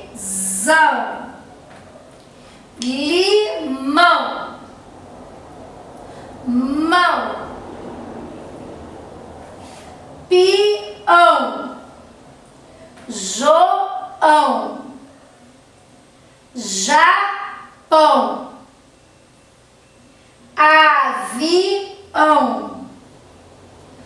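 A woman speaks clearly and slowly, pronouncing single words with pauses between them.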